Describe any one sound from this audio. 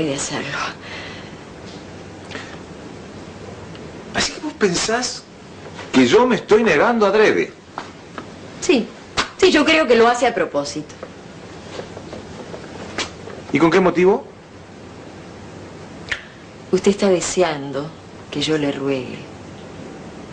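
A woman speaks with emotion, close by.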